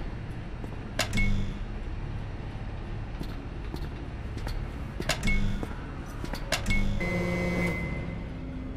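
Buttons on a keypad click, each press followed by a short beep.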